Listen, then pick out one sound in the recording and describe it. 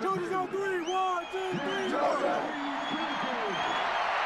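Young men shout together in a huddle nearby.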